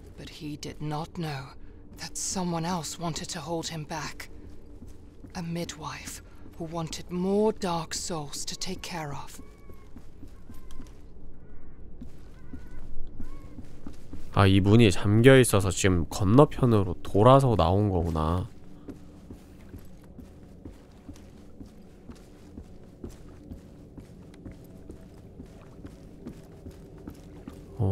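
Footsteps tap slowly on wooden boards.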